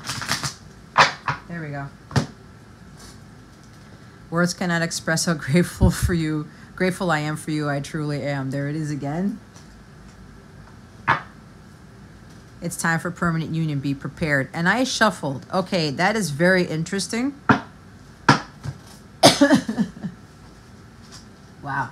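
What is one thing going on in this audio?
Playing cards shuffle and flick close by.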